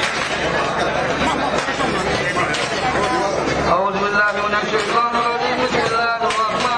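A crowd of men and women chatter loudly all around.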